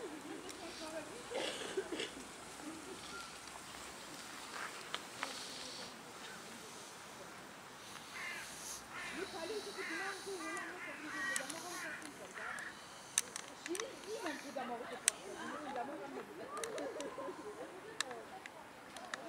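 Flowers and leaves rustle softly in a light breeze outdoors.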